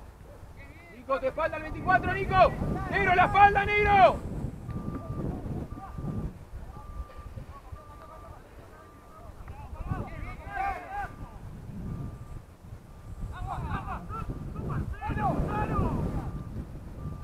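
Players shout to each other across an open field, heard from a distance.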